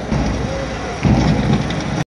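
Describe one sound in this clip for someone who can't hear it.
A large crowd chants together outdoors.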